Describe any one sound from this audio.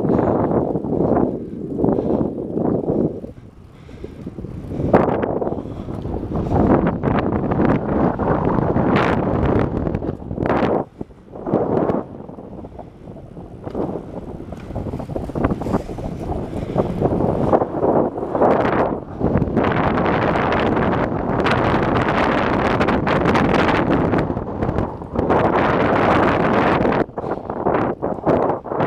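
Wind buffets a microphone on a moving bicycle.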